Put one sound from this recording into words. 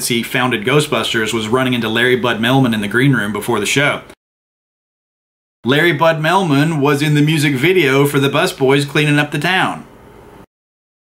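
A man talks with animation, close to the microphone.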